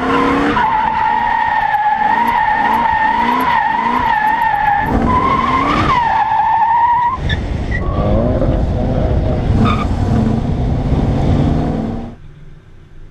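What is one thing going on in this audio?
A car engine roars hard.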